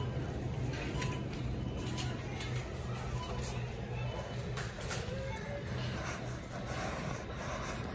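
A shopping cart rolls across a hard floor.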